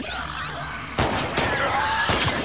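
A pistol fires.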